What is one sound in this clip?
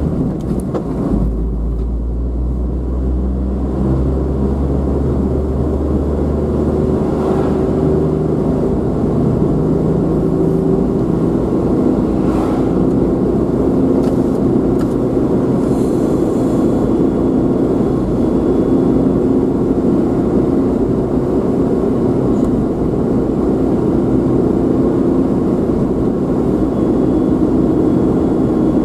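Tyres roll with a steady rumble on a paved road.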